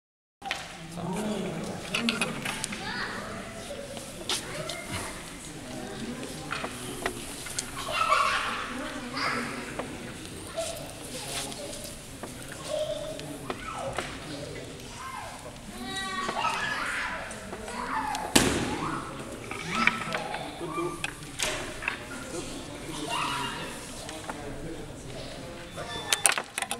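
Small plastic figures click as fingers flick them across a table.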